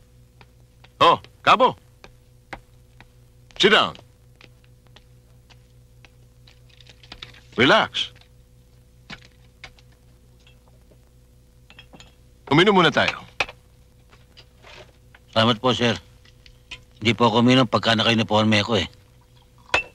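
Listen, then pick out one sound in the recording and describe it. Men speak in short bursts nearby.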